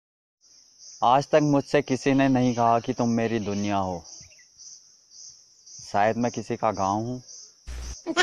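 A man speaks slowly and mournfully close by.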